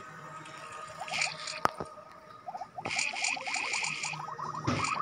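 Short rising blips of a video game chime as a snake swallows glowing orbs.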